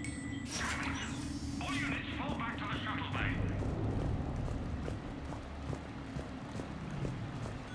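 Armoured footsteps thud on a metal floor.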